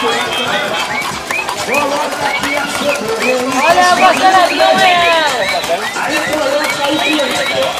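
Toy horses whinny in high, repeated electronic neighs.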